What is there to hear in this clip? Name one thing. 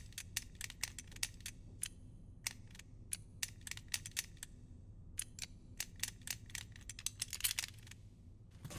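The dials of a combination lock click as they turn, in quick clicks.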